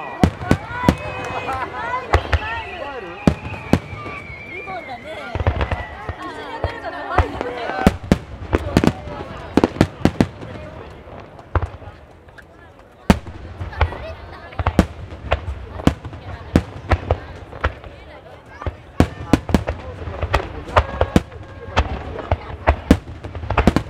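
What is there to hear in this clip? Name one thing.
Fireworks burst with loud, sharp bangs, one after another.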